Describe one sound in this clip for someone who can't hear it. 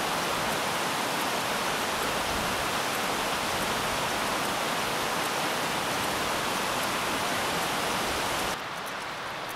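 A mountain stream rushes loudly over rocks.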